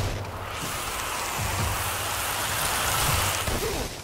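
Sparks fizz and crackle.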